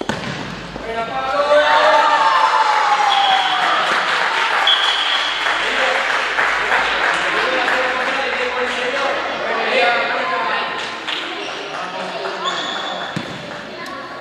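Children cheer and shout loudly in a large echoing hall.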